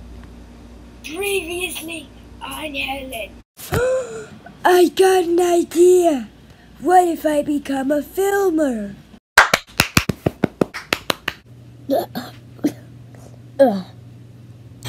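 A young child speaks with animation close to a microphone.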